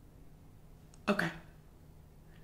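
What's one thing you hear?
A young man shouts in surprise.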